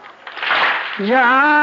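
A man sings a mournful chant.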